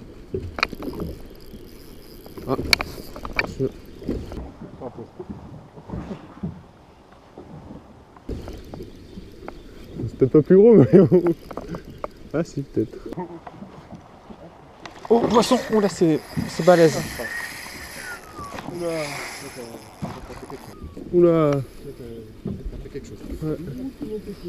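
Wind blows outdoors over open water.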